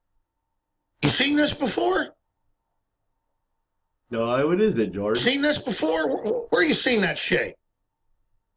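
A man speaks forcefully into a microphone, in bursts with pauses.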